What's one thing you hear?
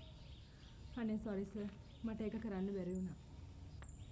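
A young woman speaks softly nearby.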